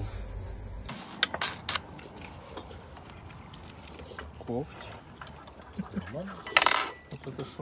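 Cutlery clinks against dishes.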